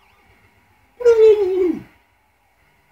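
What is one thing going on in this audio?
A loud video game sound effect whistles downward in pitch.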